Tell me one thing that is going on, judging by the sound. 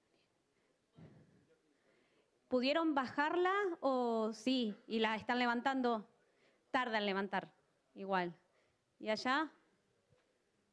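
A young woman speaks with animation into a microphone, heard through a loudspeaker in a large room.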